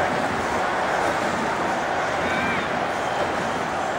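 A ball is struck hard with a thud.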